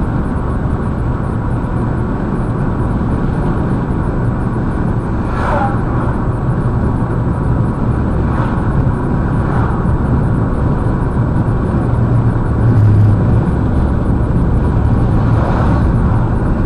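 A car drives along a road with a steady low rumble of tyres and engine.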